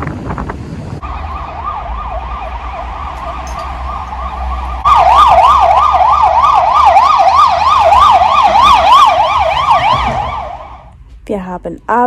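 An ambulance siren wails rapidly up and down, growing louder.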